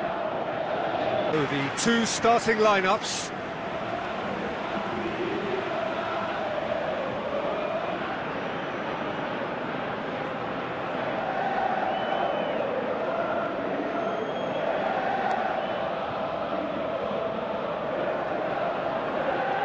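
A large crowd chants and roars steadily in a big open stadium.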